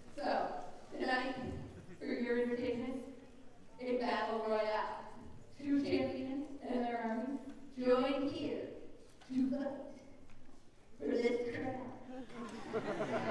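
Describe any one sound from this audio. A woman speaks with animation through a loudspeaker in a large echoing hall.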